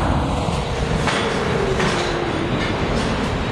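Train brakes squeal with a falling whine.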